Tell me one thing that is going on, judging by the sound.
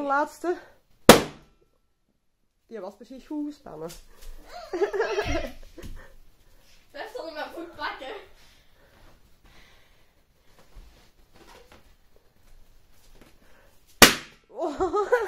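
A balloon bursts with a loud pop.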